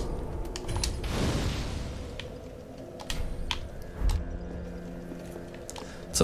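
A bonfire crackles.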